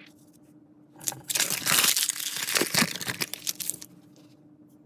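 Paper crumples and rustles loudly.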